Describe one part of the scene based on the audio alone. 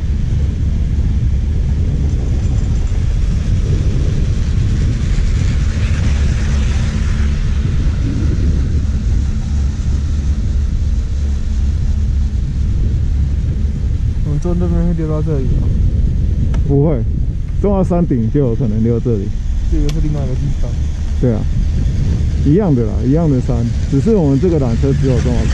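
Skis hiss and scrape steadily over packed snow.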